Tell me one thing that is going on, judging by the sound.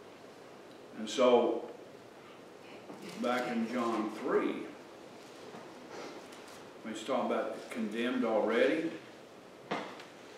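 An older man preaches slowly and deliberately into a microphone, with pauses between phrases.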